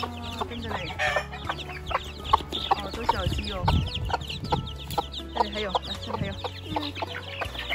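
Many chicks peep rapidly and shrilly, close by.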